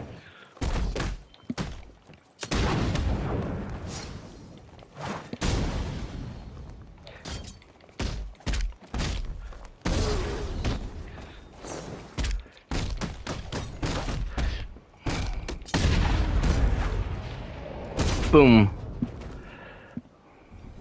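Heavy punches and kicks thud again and again in a fast brawl.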